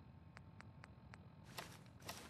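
Short electronic clicks sound as a menu is scrolled.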